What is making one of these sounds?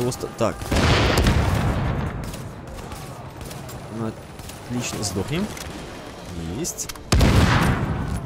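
Gunfire cracks in bursts.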